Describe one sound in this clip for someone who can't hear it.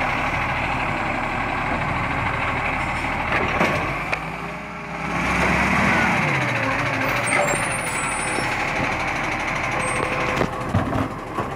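A garbage truck's diesel engine rumbles close by.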